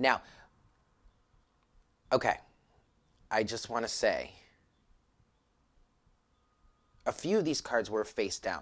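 A woman speaks calmly close by, in short phrases with pauses.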